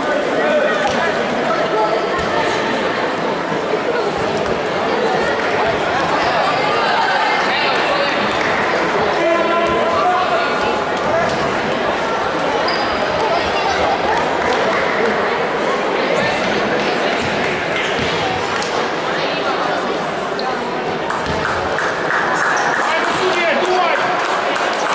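A crowd of young women chatters and calls out in a large echoing hall.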